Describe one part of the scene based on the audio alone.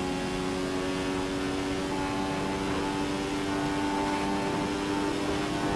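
A racing car engine screams at high, steady revs.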